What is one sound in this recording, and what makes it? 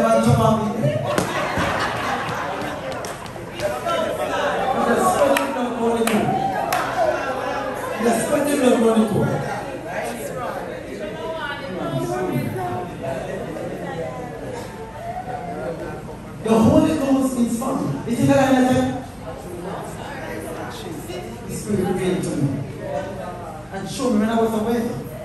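A man preaches with animation into a microphone, heard through loudspeakers in an echoing hall.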